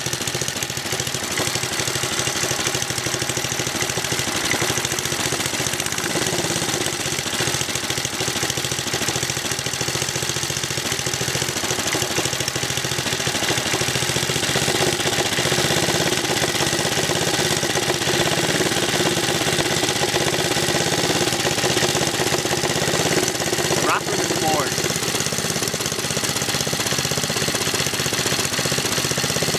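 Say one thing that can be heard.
A small engine runs loudly and steadily, rattling close by.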